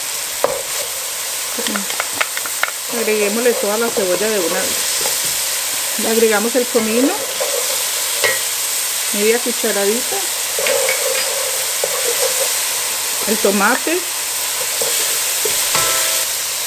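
Vegetables sizzle steadily in hot oil.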